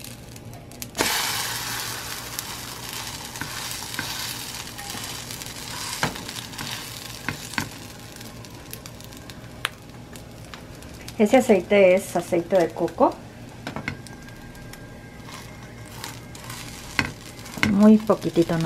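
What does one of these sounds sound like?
Egg batter sizzles and crackles in a frying pan.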